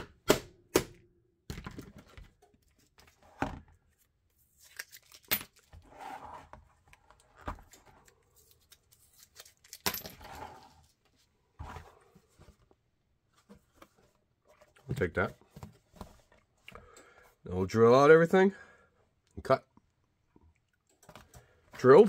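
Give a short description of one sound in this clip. A sheet of stiff plastic crinkles and crackles as hands flex and handle it.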